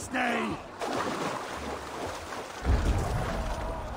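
Water splashes loudly as something plunges in.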